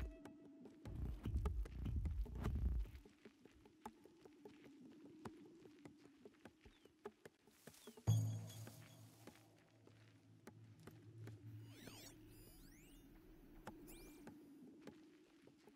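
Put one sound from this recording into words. Footsteps crunch on dry ground and grass.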